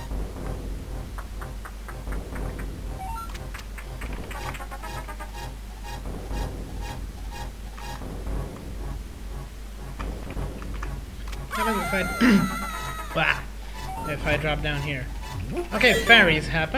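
Retro video game music and sound effects play.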